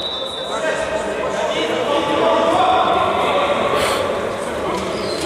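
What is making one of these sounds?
Shoes squeak sharply on a hard court in an echoing hall.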